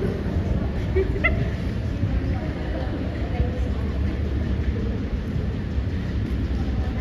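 Several women chat and murmur nearby.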